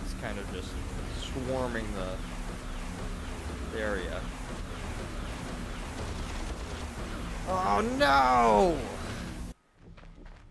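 Rockets whoosh through the air.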